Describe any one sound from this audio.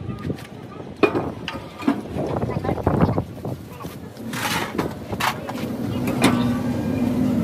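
A steel brake drum clanks as it is fitted onto a truck wheel hub.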